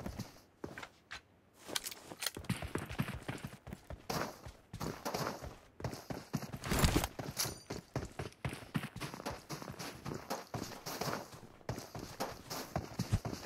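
Footsteps crunch quickly over snowy ground.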